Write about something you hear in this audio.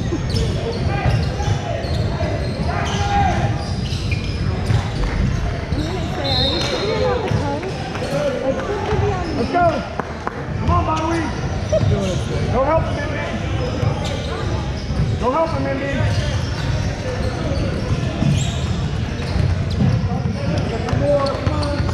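A basketball bounces on a court.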